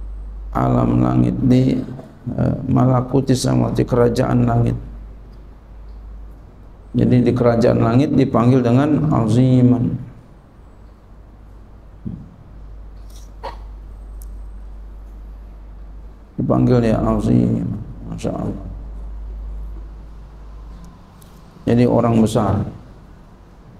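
A man speaks calmly into a microphone in bursts, with pauses between phrases.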